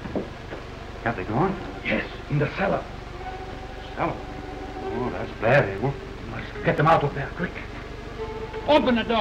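A man speaks tensely in a low voice nearby.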